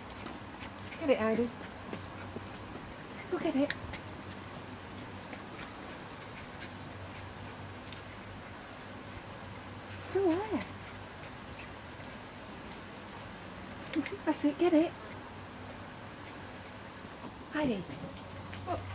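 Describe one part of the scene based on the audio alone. A small dog barks and yelps in short bursts outdoors.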